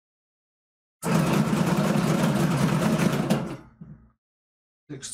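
Dice rattle and tumble across a table.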